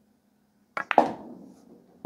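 Billiard balls clack together.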